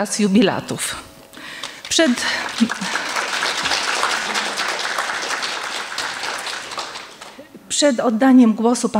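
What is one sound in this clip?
A woman reads aloud calmly into a microphone.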